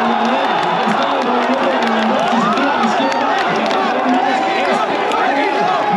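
Many people sing and chant together loudly.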